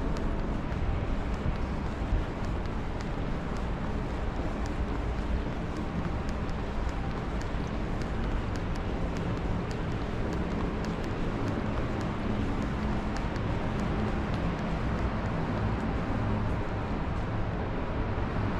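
Footsteps tap on a hard tiled floor at a steady walking pace.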